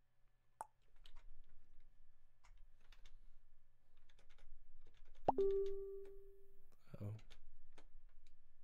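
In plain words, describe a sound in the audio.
A man speaks calmly, close to a microphone.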